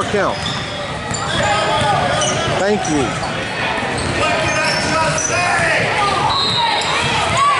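Young players shout and call out to each other.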